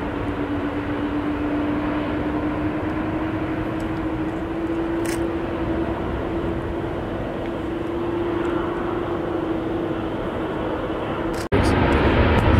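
A jet engine roars as an airliner takes off and climbs away.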